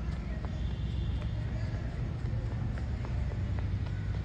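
A small child's footsteps patter softly on a dirt path.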